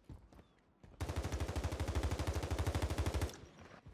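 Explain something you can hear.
Rapid gunfire from an automatic weapon in a video game rattles.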